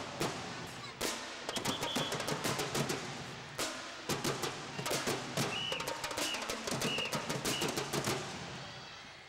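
Feet stomp and hands clap in quick rhythm in an echoing hall.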